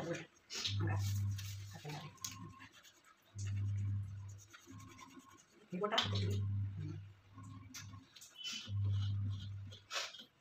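Hands squish and mix crumbly food in a metal plate.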